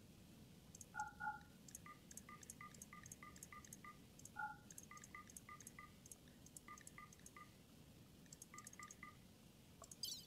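Short, soft interface blips sound as options are ticked in a menu.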